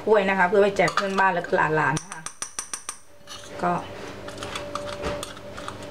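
A spoon scoops crumbs into a plastic cup with light taps.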